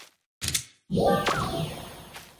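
A blade swings with a whoosh and a clang.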